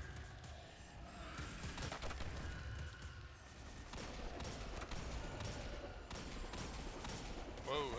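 Gunshots fire in quick bursts.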